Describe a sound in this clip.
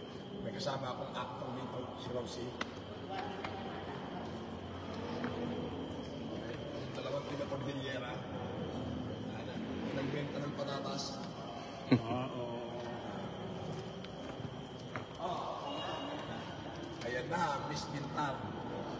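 A man talks with animation close by, in a large echoing hall.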